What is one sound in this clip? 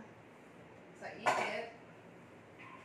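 Metal kitchenware clinks and clatters close by.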